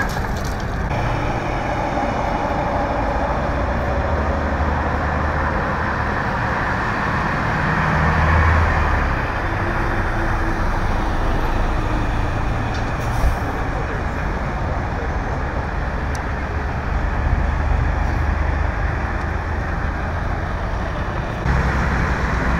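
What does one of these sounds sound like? Traffic rushes past on a wet road with a steady hiss of tyres.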